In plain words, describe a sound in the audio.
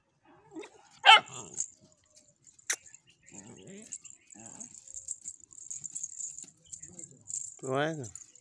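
A gull terrier puppy yelps and barks in short bursts.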